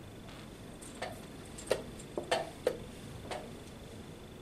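Wooden chess pieces clack on a board.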